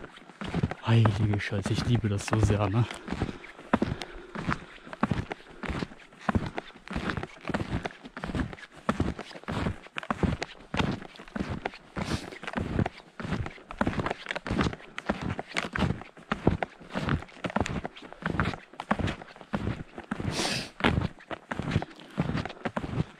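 Footsteps crunch steadily through fresh snow.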